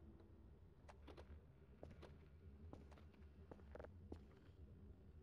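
Keyboard keys click in quick bursts as someone types.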